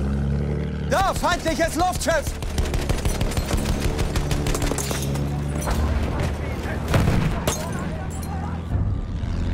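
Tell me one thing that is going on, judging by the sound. A machine gun fires rapid bursts.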